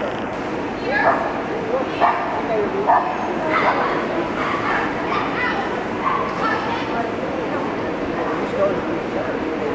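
A woman calls out commands loudly.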